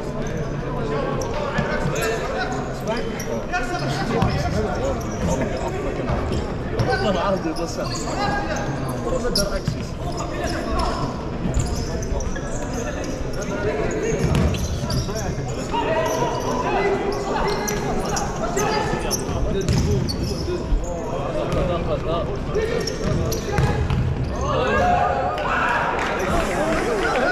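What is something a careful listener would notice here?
Spectators chatter nearby in a large echoing hall.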